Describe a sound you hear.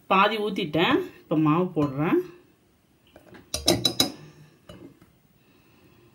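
A metal spoon scrapes and scoops through dry flour in a metal bowl.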